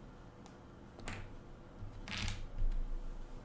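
A small game piece clicks down onto a board.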